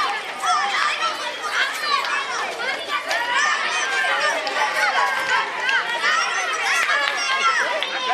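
A crowd of young girls shout and cheer excitedly close by.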